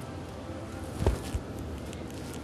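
A man pats another man on the back during a hug.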